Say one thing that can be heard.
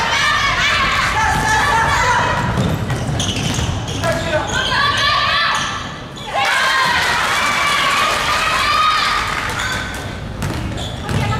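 Basketball shoes squeak on the wooden court.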